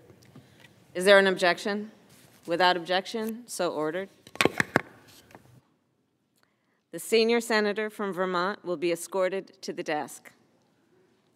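A woman speaks formally into a microphone.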